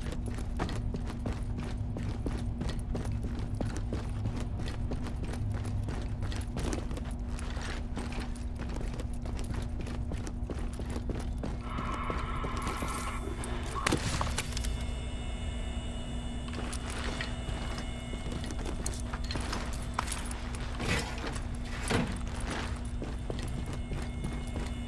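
Footsteps thud on stairs and a hard floor.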